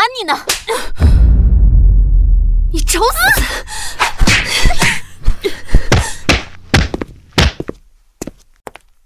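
A young woman shrieks and shouts in alarm nearby.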